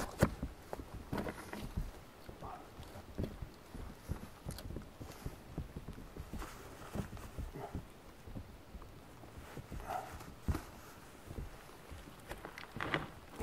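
A man speaks calmly outdoors, close by.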